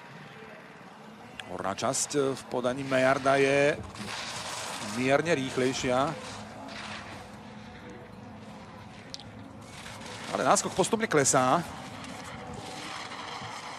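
Skis scrape and hiss over hard snow in quick turns.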